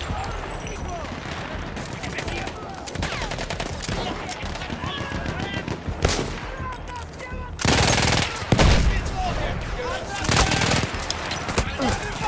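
Distant gunfire and explosions rumble across a battlefield.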